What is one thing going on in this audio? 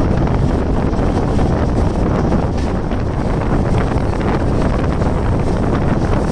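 A train rumbles steadily along the tracks, heard close by from an open window.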